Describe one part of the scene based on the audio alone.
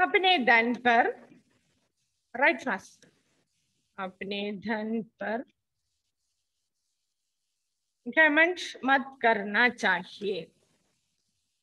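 A woman speaks calmly through a microphone, with pauses.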